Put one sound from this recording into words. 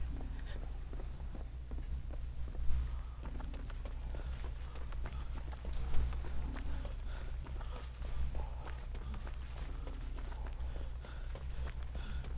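Footsteps run quickly over boards and crunching leaves.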